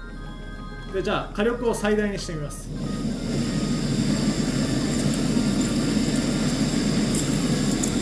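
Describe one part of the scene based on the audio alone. A gas burner hisses and roars steadily.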